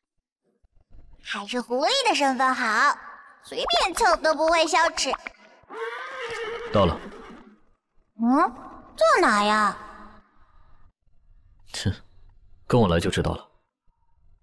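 A young man speaks calmly and softly.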